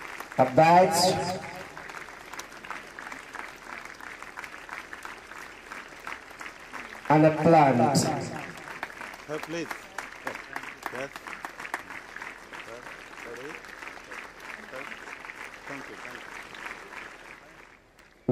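A crowd of people applauds steadily.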